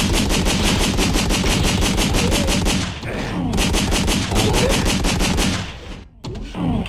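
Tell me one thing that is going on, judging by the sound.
Gunshots fire in a rapid, even burst.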